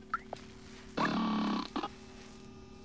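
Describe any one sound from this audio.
A robot chirps a short burst of electronic beeps.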